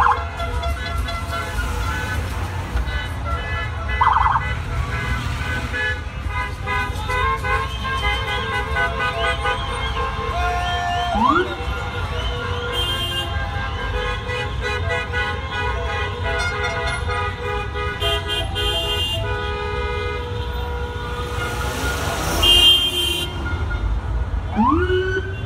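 Car engines idle and hum in traffic.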